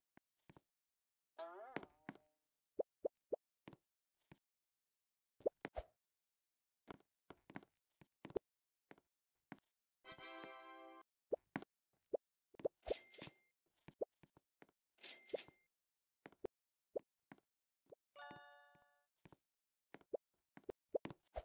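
Short electronic pops and chimes sound repeatedly.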